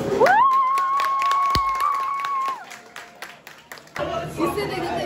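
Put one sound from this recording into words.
A group of young people clap their hands.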